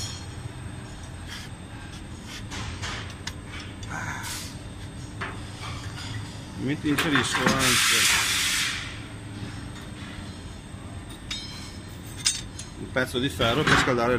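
Metal tongs clink against metal pieces.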